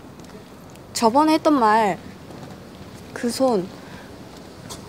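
A young woman speaks softly and hesitantly nearby.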